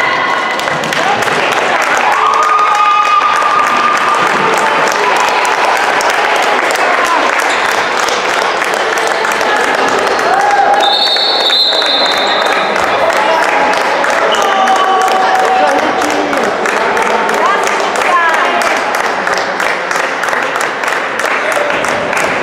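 Young girls chatter and call out in a large echoing hall.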